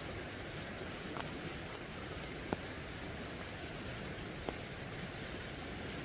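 Dry leaves rustle and crackle as they are handled.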